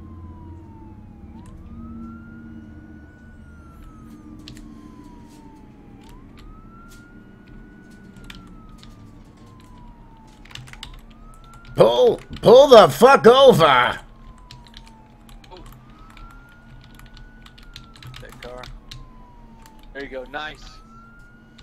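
A police siren wails, rising and falling over and over.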